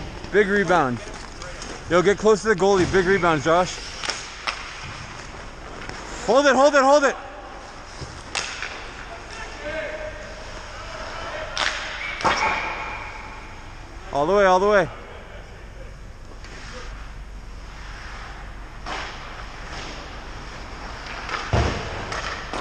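Hockey skates scrape and carve across the ice.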